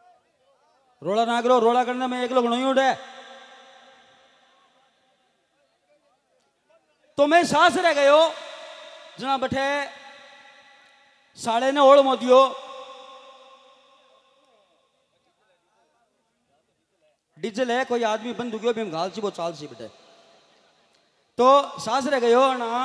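A middle-aged man sings loudly into a microphone through loudspeakers, in bursts with pauses, the sound echoing outdoors.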